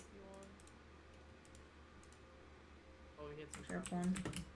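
Items click softly as they are moved around a game inventory.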